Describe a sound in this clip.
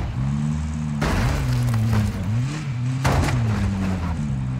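A vehicle crashes and scrapes against another vehicle.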